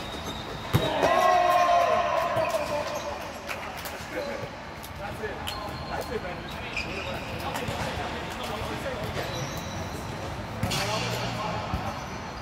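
Young men shout and call out with animation in a large echoing hall.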